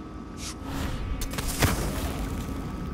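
A magical whoosh rushes past.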